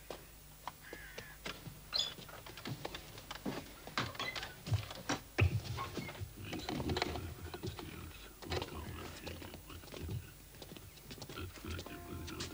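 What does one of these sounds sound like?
Footsteps shuffle slowly on a stone floor in an echoing space.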